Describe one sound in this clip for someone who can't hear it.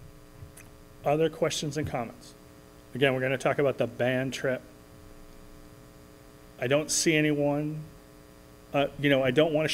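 A man speaks calmly into a microphone in a large room, pausing between phrases.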